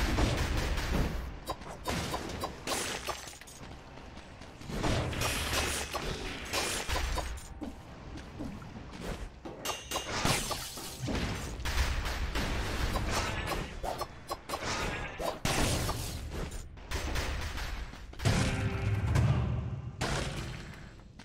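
Sword slashes and hits crack in quick bursts.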